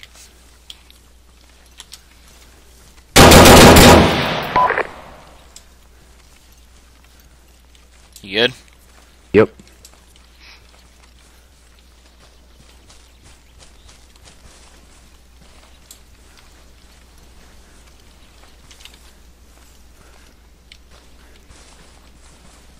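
Footsteps crunch on dry ground and gravel.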